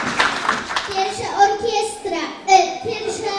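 A young girl speaks into a microphone through loudspeakers.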